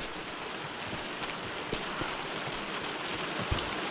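A person climbs down a wooden ladder.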